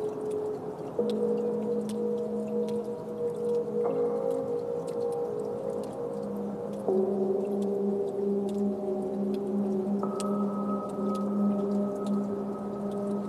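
Soft clicking and ticking percussion patters over the music.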